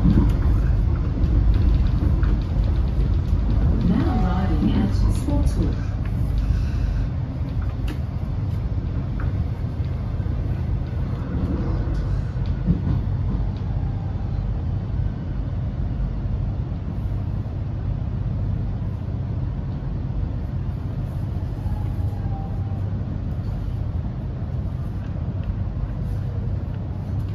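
Train wheels clack over the rails.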